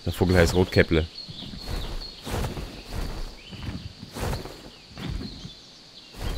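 Large wings beat with heavy, rhythmic whooshes.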